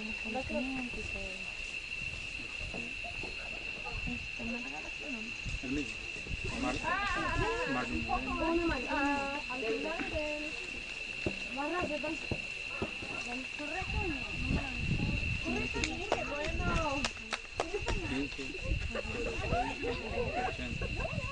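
Men talk calmly nearby, outdoors.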